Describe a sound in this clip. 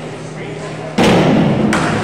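A diving board bangs and rattles as a diver springs off.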